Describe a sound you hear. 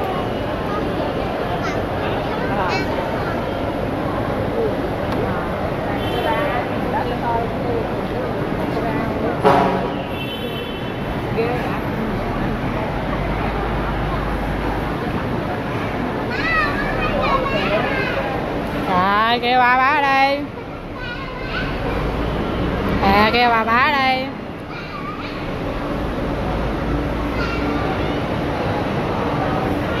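Voices murmur in the background of a large echoing hall.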